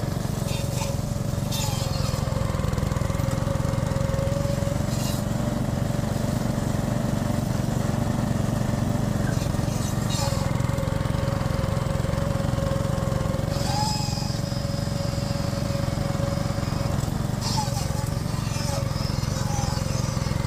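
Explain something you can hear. A small engine runs steadily with a loud, low chugging.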